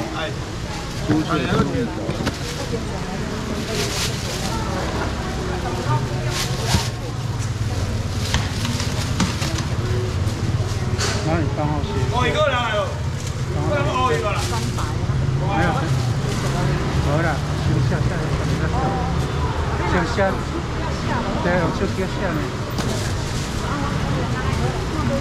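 Fish thump and clatter on a counter.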